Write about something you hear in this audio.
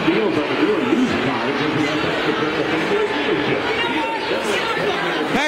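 A crowd of spectators cheers and shouts loudly in a large echoing arena.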